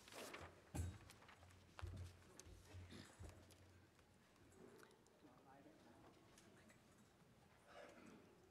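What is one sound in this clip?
A woman speaks quietly into a microphone in a large echoing hall.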